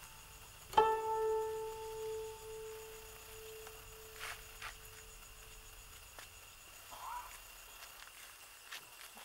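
Feet shuffle softly on grass.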